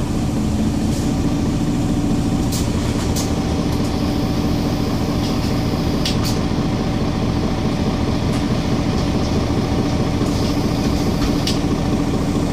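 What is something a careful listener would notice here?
Loose fittings rattle and click as the bus moves.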